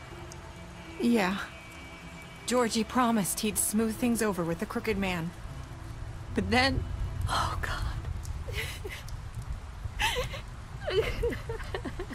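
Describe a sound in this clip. A young woman speaks in a shaken, tearful voice.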